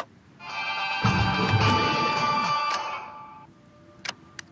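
A short musical chime plays as a notice pops up.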